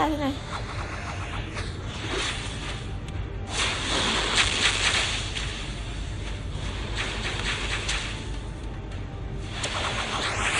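Fantasy battle sound effects whoosh and crash.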